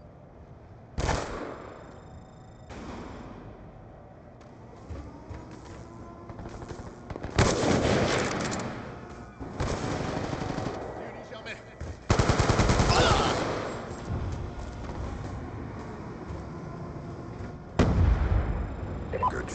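Rifle shots ring out in loud bursts.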